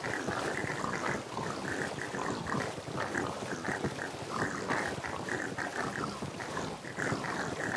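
Many game pigs grunt and oink over one another in a dense, constant chorus.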